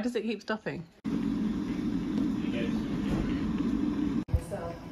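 An electric kettle heats water with a steady rumble.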